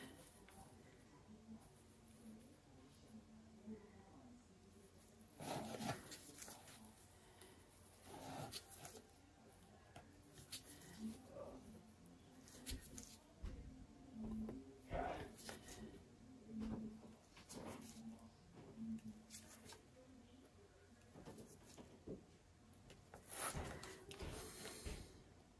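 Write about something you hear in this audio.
A thin paintbrush strokes lightly on a canvas.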